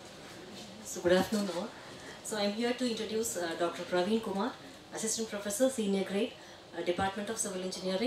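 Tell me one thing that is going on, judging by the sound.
A middle-aged woman speaks calmly into a microphone in a large room.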